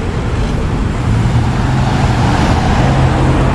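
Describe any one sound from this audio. A car engine hums as the car drives past.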